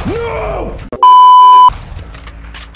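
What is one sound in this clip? A steady high beep sounds briefly.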